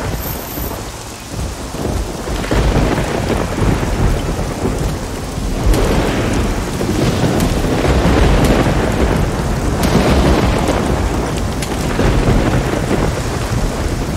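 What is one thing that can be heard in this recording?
Footsteps rustle through dense leaves and undergrowth.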